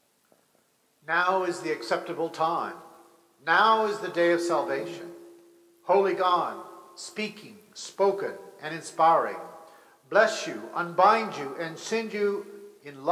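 A middle-aged man chants slowly and loudly through a microphone in an echoing room.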